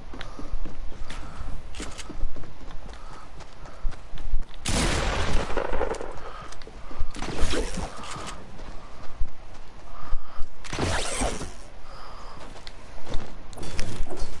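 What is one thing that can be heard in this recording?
Footsteps thud quickly over wood and grass.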